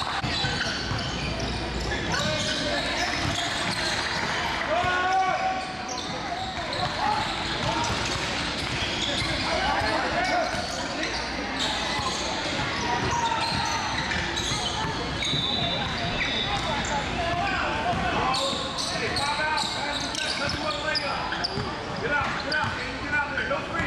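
Voices of players echo in a large hall.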